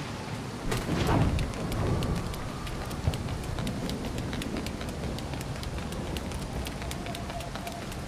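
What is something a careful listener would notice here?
Footsteps slap quickly on wet stone.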